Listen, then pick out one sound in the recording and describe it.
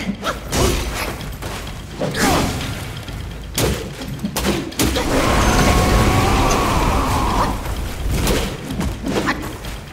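Swooshing blasts of dust rush past.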